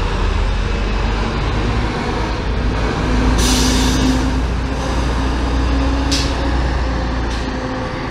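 A bus engine roars as the bus turns across an intersection.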